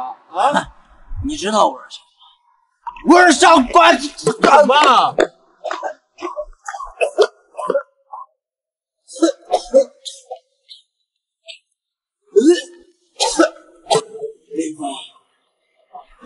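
A young man speaks in a slurred, drunken voice close by.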